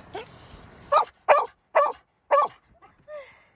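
A dog barks sharply several times.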